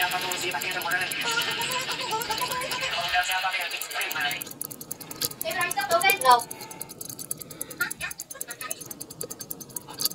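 Metal tweezers tap and click softly against a small watch part.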